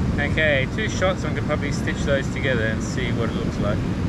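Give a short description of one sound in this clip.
Waves wash over rocks on the shore.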